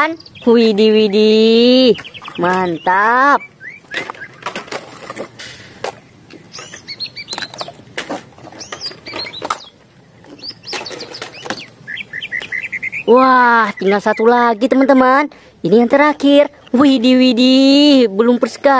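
Plastic toys clatter against a hard tray.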